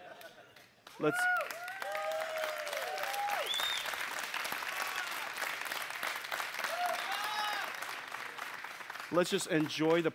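A large crowd cheers loudly in a big hall.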